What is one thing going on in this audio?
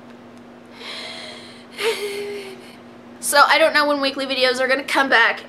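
A young woman speaks close to a microphone, softly and then with more animation.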